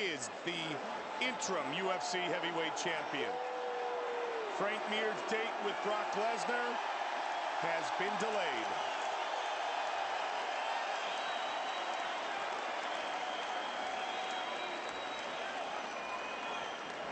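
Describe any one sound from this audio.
A large arena crowd roars and cheers steadily.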